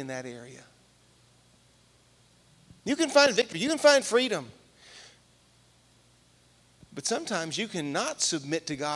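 A man speaks with animation through a microphone and loudspeakers in a large room.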